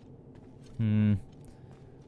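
Footsteps tap on a stone floor in an echoing space.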